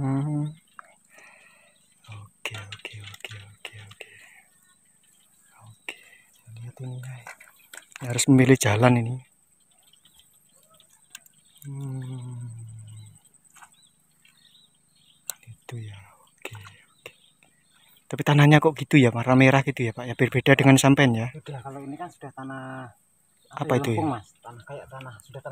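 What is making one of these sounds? Rice seedlings rustle and squelch as they are pulled from wet mud.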